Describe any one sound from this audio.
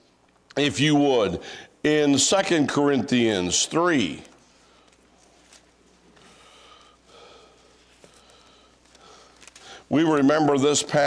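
An older man preaches into a microphone with emphatic, drawn-out phrases.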